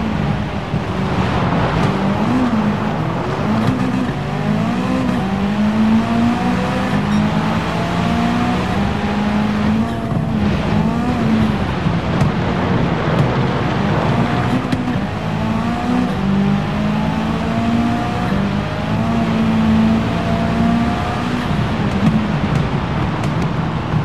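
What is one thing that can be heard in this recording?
A rally car engine revs hard, rising and dropping as the gears change.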